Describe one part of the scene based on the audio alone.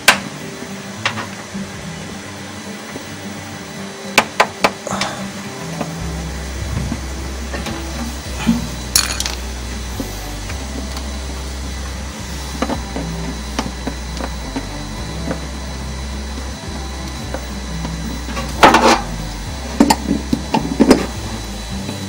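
Hard plastic parts click and knock.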